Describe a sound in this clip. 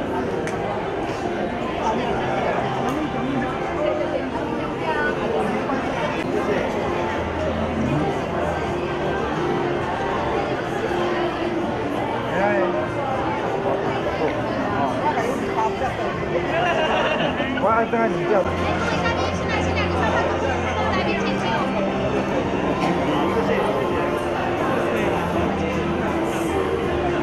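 A crowd of men and women chatters loudly in a large hall.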